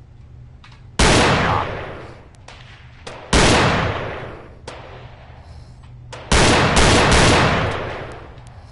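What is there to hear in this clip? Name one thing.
A gun fires loud single shots that echo through a large hall.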